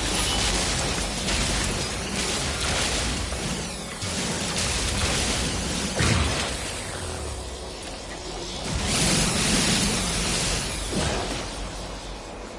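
A mining beam hisses and crackles as it cuts into rock.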